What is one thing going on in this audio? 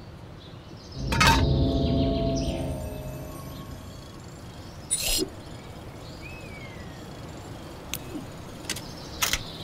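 Game sound effects chime and click as a puzzle opens.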